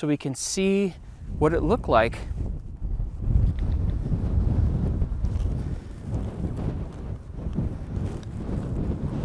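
Wind blows and buffets against the microphone outdoors.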